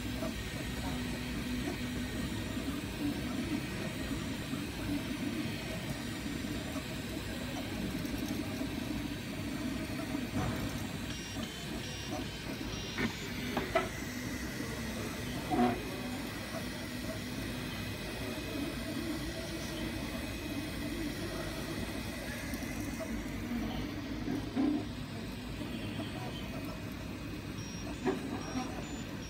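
Small cooling fans hum steadily.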